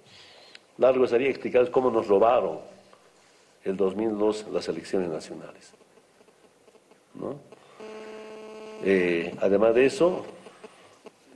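A man speaks firmly into a microphone, in short phrases with pauses.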